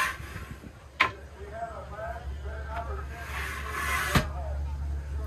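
A sharp click sounds as a man works a latch.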